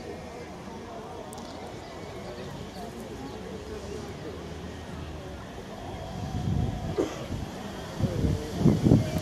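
Adult men and women talk quietly at a distance.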